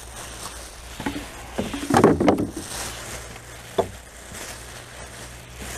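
A plastic rubbish bag rustles and crinkles as it is handled.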